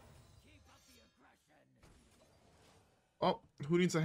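A magical whoosh and shimmer sound as a spell takes effect.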